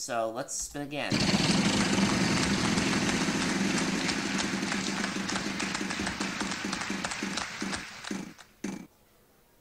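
A prize wheel clicks rapidly as it spins and slows.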